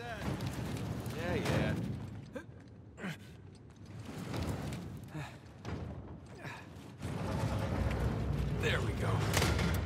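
A heavy crate scrapes across a stone floor.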